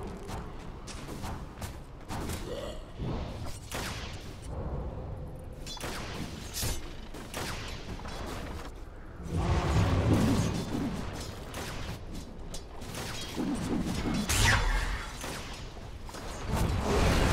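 Magic spells zap and crackle during a fight.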